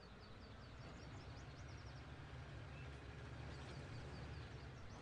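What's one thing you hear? A tractor engine grows louder as it speeds up.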